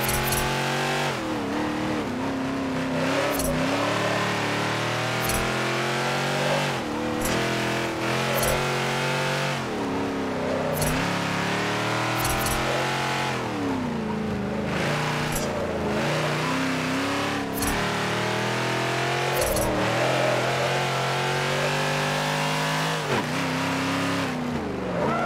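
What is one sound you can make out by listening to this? A car engine revs up and down, dropping in pitch at each gear shift.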